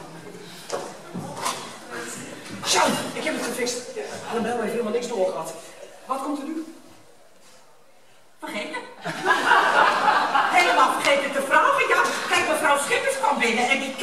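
A middle-aged man speaks with animation in a large hall.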